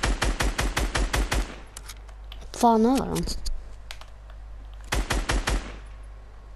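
A rifle fires in rapid bursts of sharp shots.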